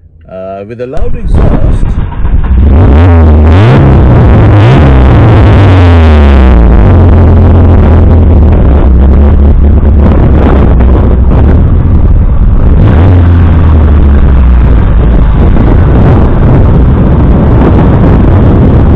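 A small car engine idles and revs loudly nearby.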